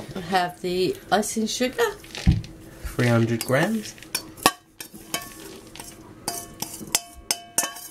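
A metal spoon scrapes and taps against a metal bowl.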